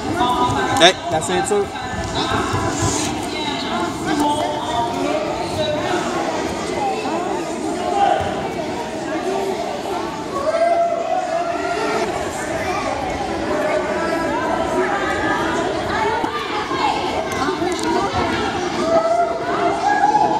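A small crowd of spectators talks and calls out in an echoing hall.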